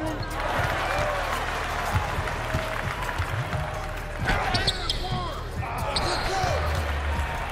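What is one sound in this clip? A large crowd murmurs and cheers in an arena.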